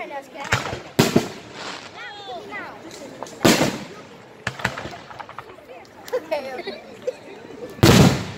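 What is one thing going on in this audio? Fireworks burst with loud bangs and crackles outdoors.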